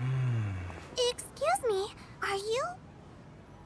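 A young woman speaks brightly and with animation, close by.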